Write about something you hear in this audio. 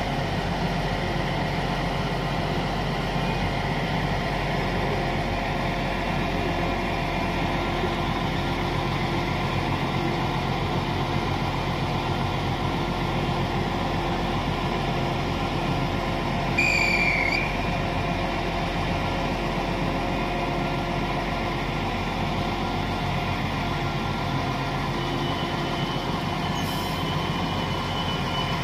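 A diesel multiple unit idles with a steady engine hum.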